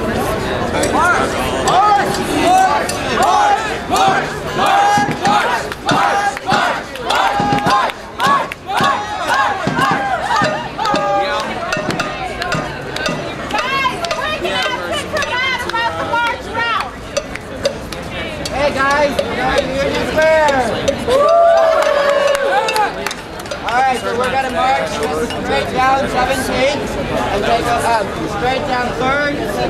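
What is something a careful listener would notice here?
A crowd chants in rhythm outdoors.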